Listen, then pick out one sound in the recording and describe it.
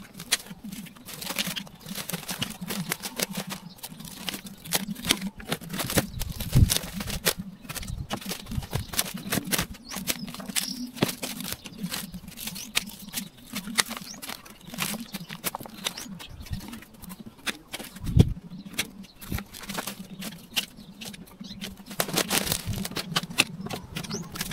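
A person rustles and pulls at dry leaves and weeds.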